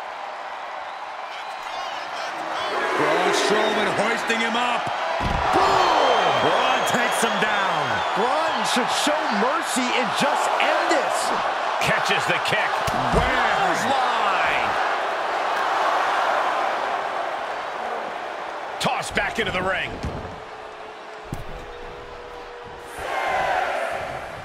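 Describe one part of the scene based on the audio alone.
A large crowd cheers and roars.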